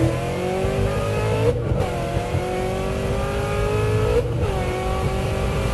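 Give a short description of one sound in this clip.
A car's tyres hum steadily on a highway.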